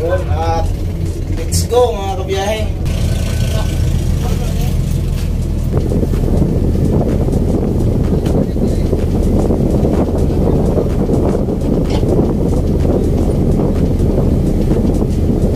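A boat engine rumbles steadily throughout.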